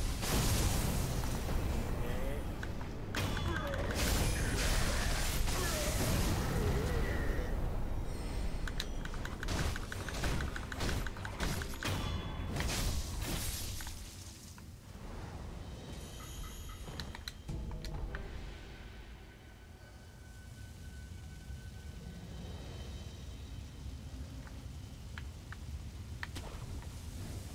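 Fire roars and crackles all around.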